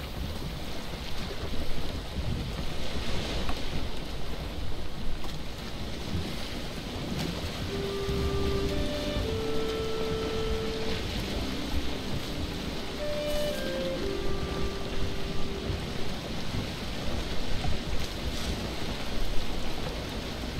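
Water rushes and splashes against a sailing boat's hull.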